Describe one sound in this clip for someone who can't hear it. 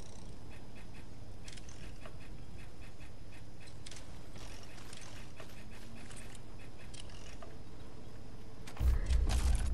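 Soft menu clicks tick repeatedly as items are scrolled through.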